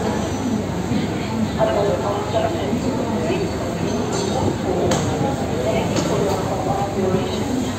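A ship's engine rumbles low and steadily.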